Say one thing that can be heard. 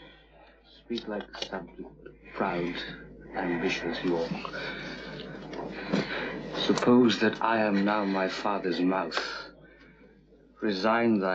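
A young man speaks in a strained, anxious voice.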